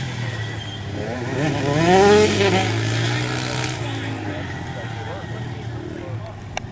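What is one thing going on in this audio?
Dirt bike engines rev and whine across an open track, rising and falling in pitch.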